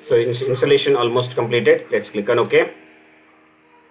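A computer mouse button clicks once.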